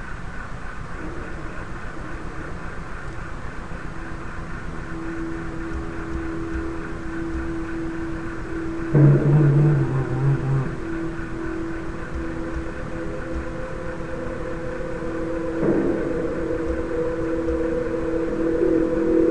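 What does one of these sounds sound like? A young man sings close to a microphone.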